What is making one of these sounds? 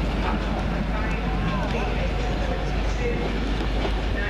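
Wheels squeal against the rails.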